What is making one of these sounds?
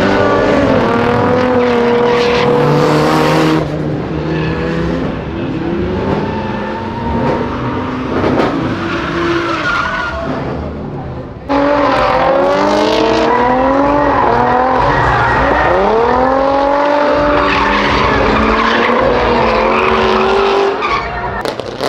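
Tyres squeal and hiss as a car slides.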